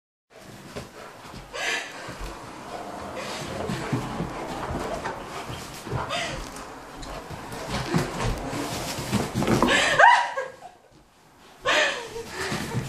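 Bedding rustles as a dog scrambles across it.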